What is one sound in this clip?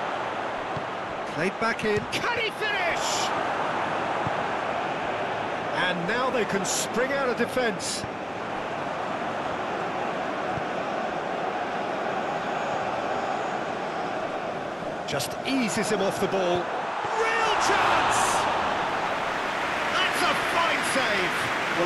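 A large crowd roars steadily in a stadium, swelling louder near the end.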